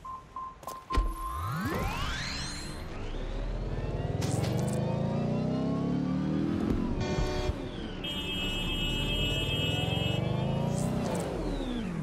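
A car engine revs hard, rising in pitch and shifting up through gears.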